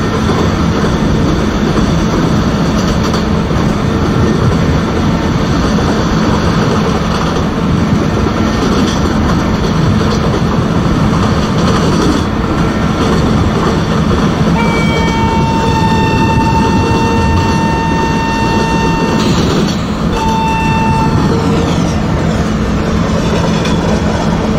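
Train wheels rumble and clatter along the rails.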